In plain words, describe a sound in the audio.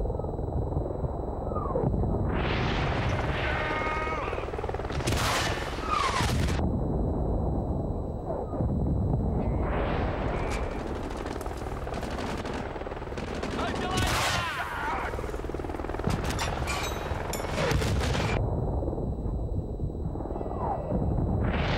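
A helicopter's rotor thumps steadily overhead.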